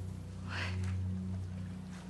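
A young woman gasps a startled half word.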